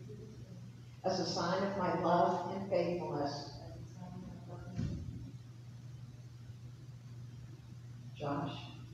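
A man speaks slowly and calmly at a distance in an echoing hall.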